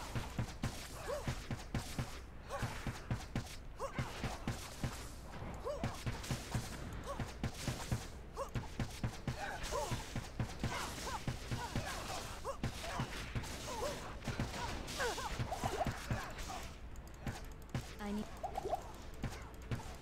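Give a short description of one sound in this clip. Quick blows and clashes of fighting in a video game sound over and over.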